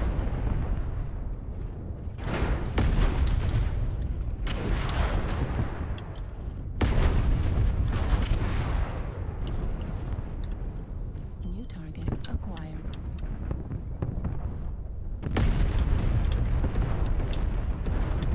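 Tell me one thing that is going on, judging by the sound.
Heavy weapons fire in bursts.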